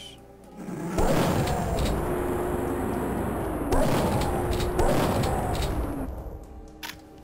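A pistol fires in sharp shots.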